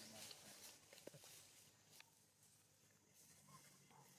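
Dry leaves rustle and crackle under a small monkey's feet.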